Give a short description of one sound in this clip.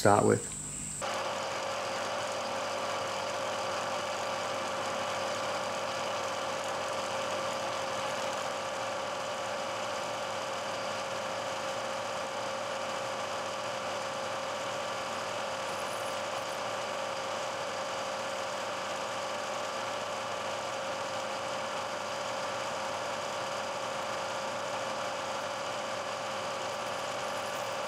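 A milling machine whirs steadily as its cutter grinds into metal.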